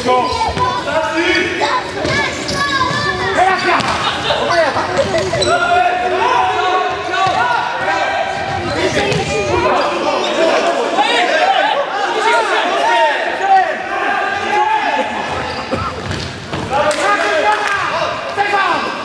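Sneakers squeak sharply on a hard indoor floor in an echoing hall.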